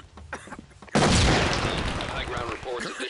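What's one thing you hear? A grenade goes off with a loud bang.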